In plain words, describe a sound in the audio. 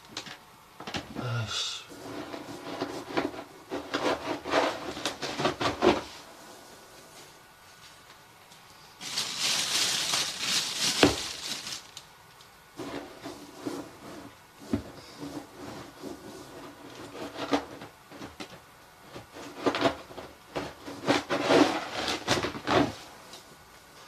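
A scoop scrapes and rattles through cat litter.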